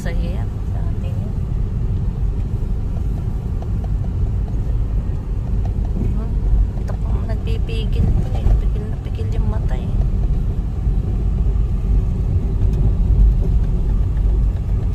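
A car engine rumbles steadily from inside the cabin.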